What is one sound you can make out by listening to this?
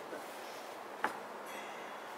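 An axe thuds into a wooden target.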